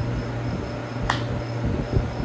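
A young man claps his hands once.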